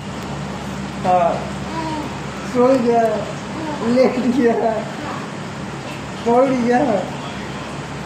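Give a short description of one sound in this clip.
A woman speaks in a high, playful voice close by.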